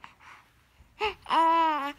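A baby cries out loudly in a high wail.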